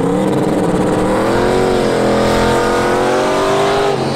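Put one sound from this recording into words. Tyres screech as they spin on the tarmac.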